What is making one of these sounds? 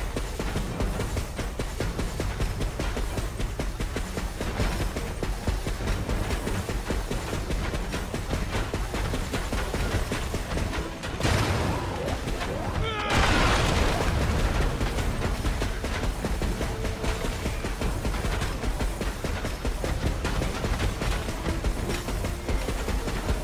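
Heavy footsteps crunch on snow.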